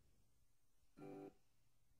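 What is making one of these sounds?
A short musical jingle plays.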